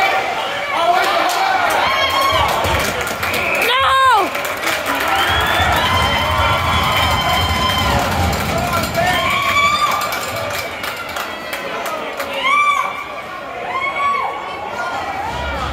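Young players shout to each other in a large echoing rink.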